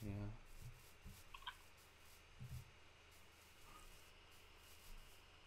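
Soft footsteps thud on grass.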